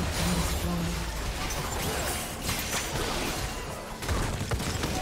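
Fantasy spell blasts and weapon clashes from a video game battle crackle and boom rapidly.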